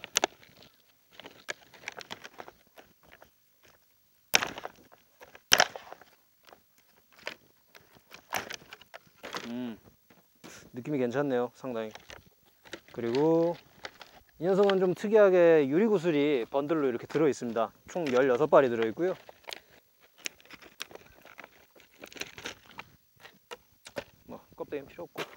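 Plastic packaging crinkles and rustles in a man's hands.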